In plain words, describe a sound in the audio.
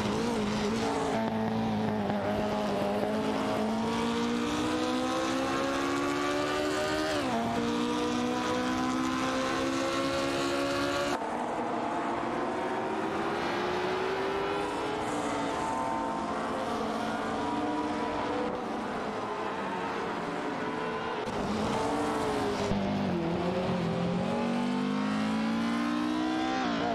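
A racing car engine whines loudly, rising in pitch as it speeds up and dropping sharply at each gear change.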